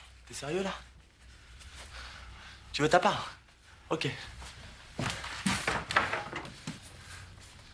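A man speaks angrily close by.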